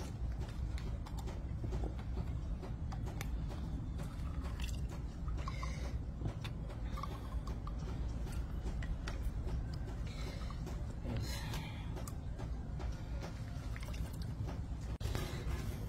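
A hand juicer squeezes limes with soft squelches.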